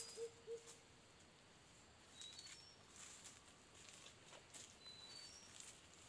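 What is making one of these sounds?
Dry leaves crunch underfoot as a man walks.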